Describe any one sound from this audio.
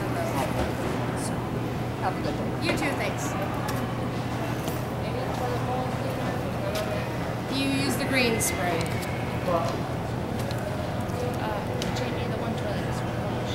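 A middle-aged woman talks calmly up close.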